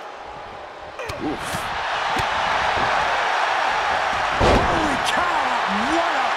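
A crowd cheers loudly in a large arena.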